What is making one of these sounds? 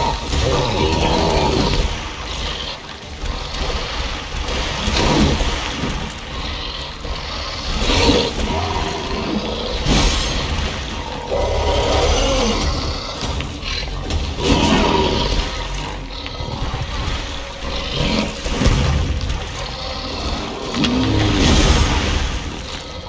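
A large creature roars and growls deeply.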